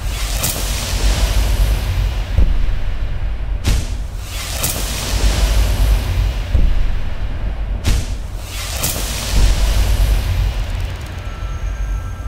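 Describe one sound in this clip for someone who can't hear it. A deep, rumbling whoosh swells with a sharp chime each time a menu option is picked.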